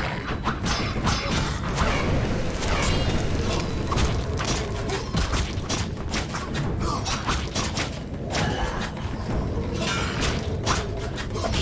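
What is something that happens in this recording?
Swords clash and slash in rapid strikes.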